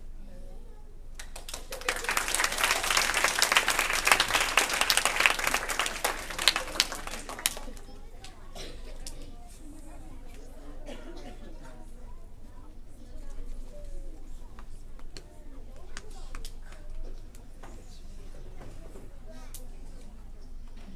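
A crowd of young children chatter and call out loudly in an echoing hall.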